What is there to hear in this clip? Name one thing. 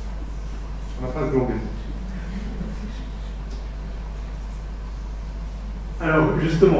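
A man speaks calmly, heard through a microphone in a large echoing room.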